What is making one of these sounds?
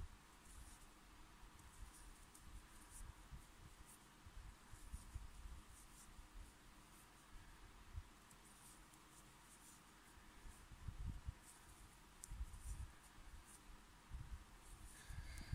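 Yarn rustles as it is pulled through stitches.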